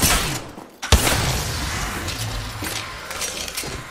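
Glass shatters with a loud crash.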